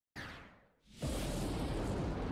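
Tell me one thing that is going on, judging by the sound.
A loud, steady roaring blast of magic fills the end.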